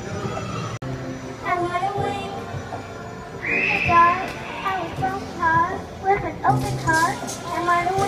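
A young girl sings loudly into a microphone.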